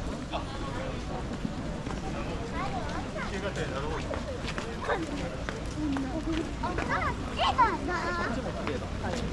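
People chatter nearby outdoors.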